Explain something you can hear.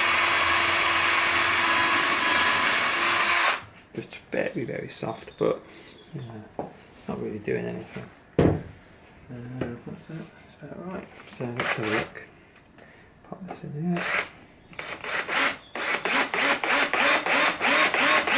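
A cordless drill drives a screw into MDF.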